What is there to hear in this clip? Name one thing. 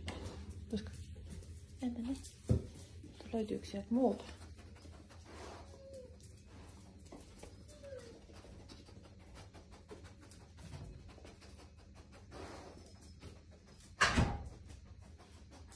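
A dog's claws click on a tiled floor.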